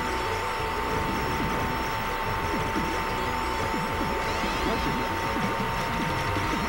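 A spaceship's rapid laser shots fire repeatedly.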